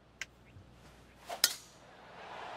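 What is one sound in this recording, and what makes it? A golf club strikes a ball with a sharp whack.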